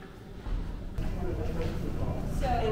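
People talk in a busy echoing hall.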